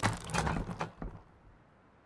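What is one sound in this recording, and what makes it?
A hammer knocks on wood and stone in short bursts.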